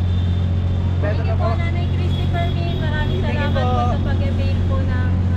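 A woman speaks nearby.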